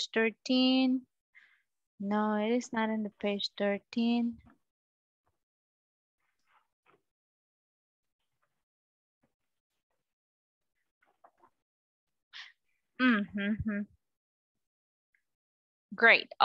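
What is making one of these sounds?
A young woman speaks clearly through an online call, in short phrases with pauses.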